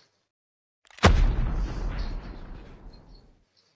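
A rifle fires a single loud shot that rings out and fades.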